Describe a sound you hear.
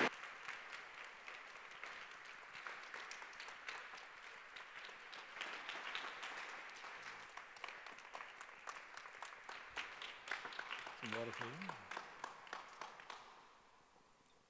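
An audience murmurs quietly in a large echoing hall.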